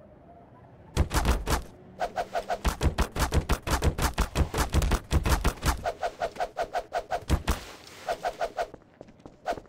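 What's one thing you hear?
A crowbar strikes a body again and again with rapid hits.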